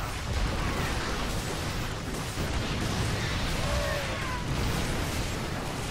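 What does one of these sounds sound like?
Explosions boom in a busy battle.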